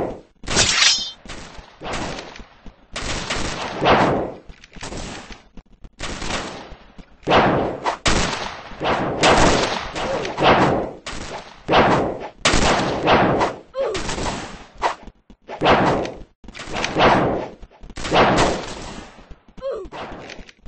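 Musket shots ring out again and again, each with a booming, fading echo.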